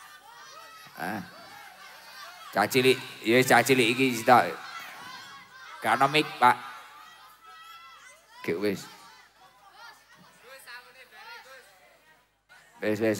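A young man sings loudly through a microphone, in short bursts with pauses.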